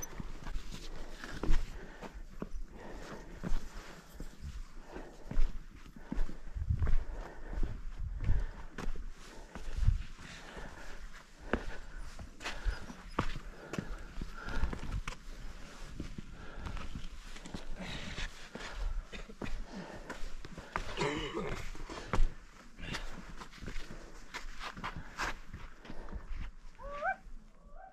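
Footsteps scuff and tap on bare rock.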